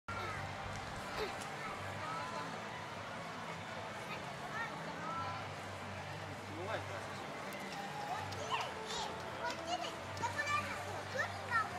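Water laps gently in a large pool.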